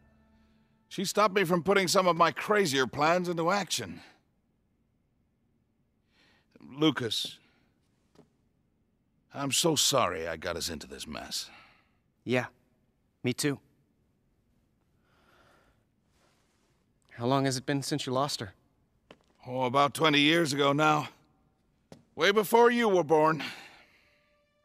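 An adult man speaks calmly.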